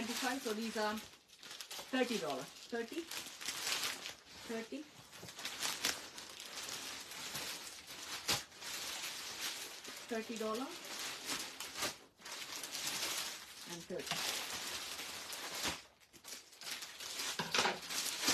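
A middle-aged woman talks close by in a calm voice.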